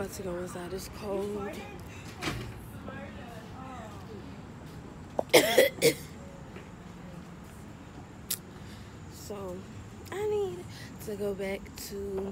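A young woman talks close by, casually and with pauses.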